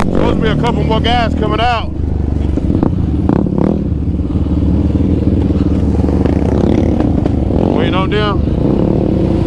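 A quad bike engine revs up and down sharply in quick bursts.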